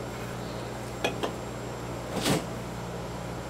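A can knocks down onto a hard counter.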